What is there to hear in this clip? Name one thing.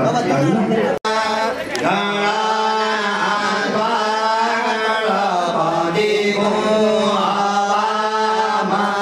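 An elderly man chants steadily into a microphone.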